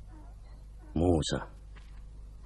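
An older man says a short word.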